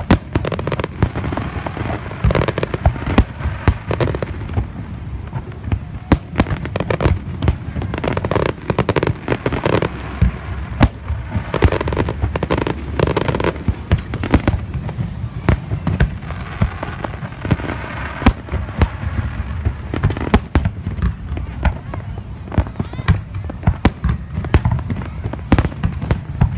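Fireworks burst with loud booms and sharp cracks outdoors.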